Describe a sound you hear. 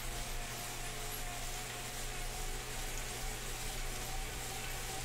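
An indoor bike trainer whirs steadily.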